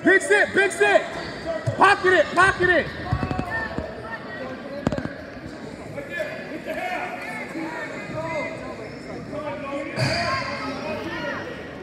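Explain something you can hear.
A crowd of spectators chatters in the background.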